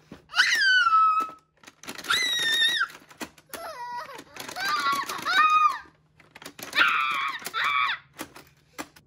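A young boy shouts and squeals with excitement close by.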